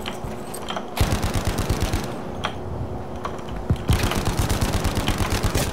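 A submachine gun fires rapid bursts close by.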